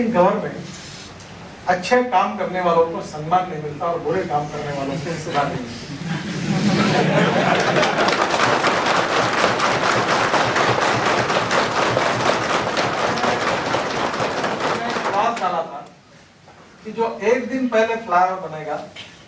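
A middle-aged man speaks with good humour through a clip-on microphone.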